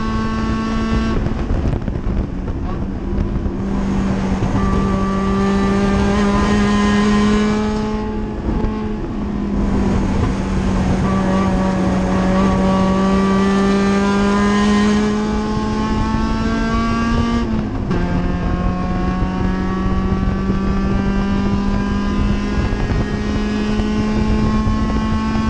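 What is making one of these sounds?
Wind and road noise rush steadily around the car.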